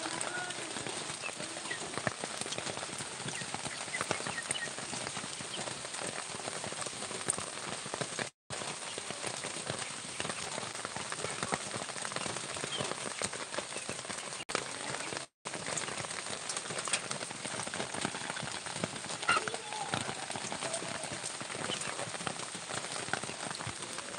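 Rabbits rustle and nibble in dry grass.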